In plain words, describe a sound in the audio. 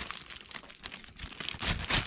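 Coins clink together inside a plastic bag.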